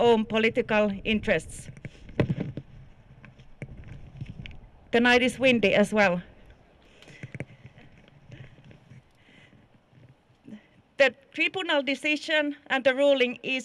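A woman speaks loudly into a microphone in bursts, heard outdoors.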